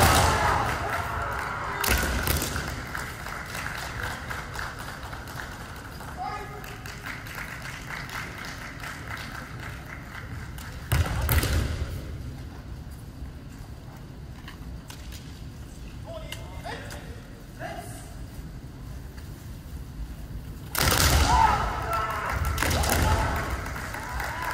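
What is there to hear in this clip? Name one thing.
Fencers shout loudly in a large echoing hall.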